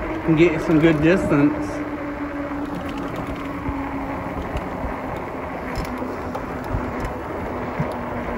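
An electric bike's hub motor whines.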